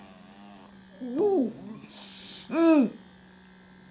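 A young man makes muffled humming sounds with his mouth.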